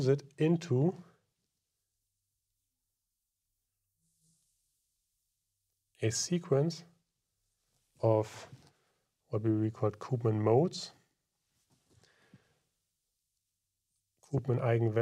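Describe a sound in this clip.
A man lectures calmly into a close microphone, pausing between phrases.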